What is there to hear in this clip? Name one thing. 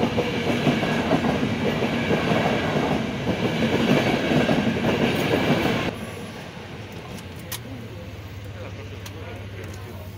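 A car engine idles quietly.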